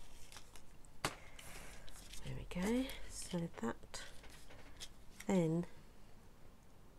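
Stiff paper rustles as it is handled.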